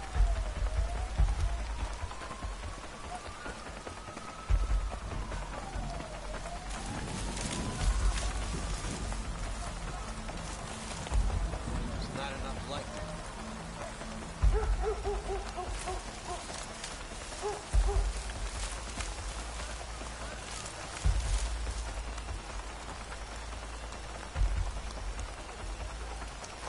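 Leaves rustle as someone pushes through dense bushes.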